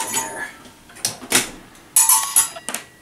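A metal kiln door thuds shut.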